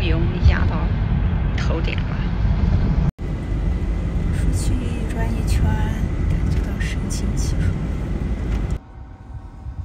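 Tyres rumble on the road inside a moving car.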